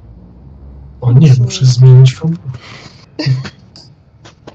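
A man talks with animation through a microphone on an online call.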